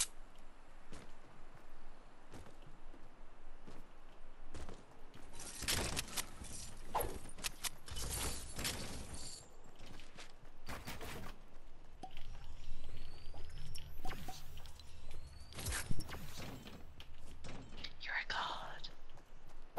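Quick footsteps patter on wooden planks and grass.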